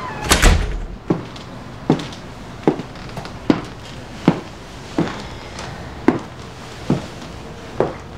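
High heels click on a hard floor at a steady pace.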